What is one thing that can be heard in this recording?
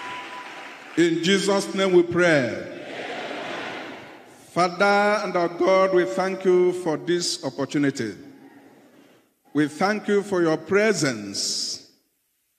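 A man preaches with passion into a microphone, heard through loudspeakers.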